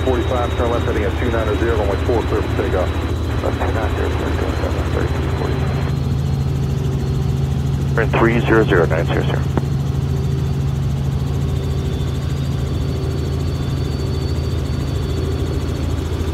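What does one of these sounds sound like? A helicopter's engine and rotor drone steadily and loudly.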